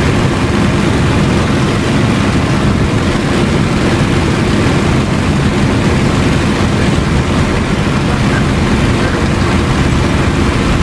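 Wind rushes past the cockpit canopy.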